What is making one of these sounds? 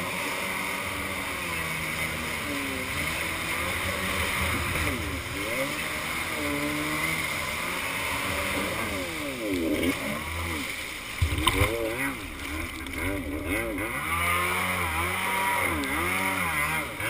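A jet ski engine revs up and down loudly as it rides across the water.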